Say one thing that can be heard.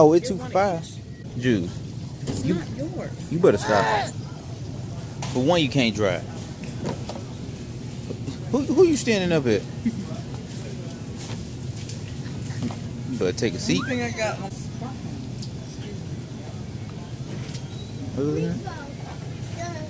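A toddler babbles and vocalises close by.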